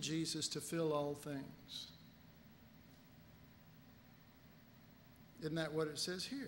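An older man lectures calmly into a microphone, with pauses.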